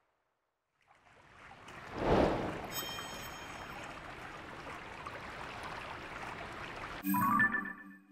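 A short triumphant musical jingle plays.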